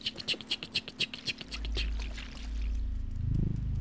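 A cat's paws patter quickly on hard ground.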